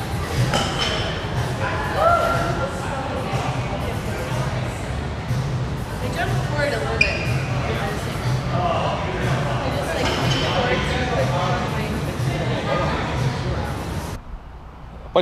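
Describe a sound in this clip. A man talks casually in a noisy, echoing room.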